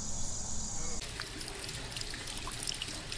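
Water flows gently over a shallow riverbed.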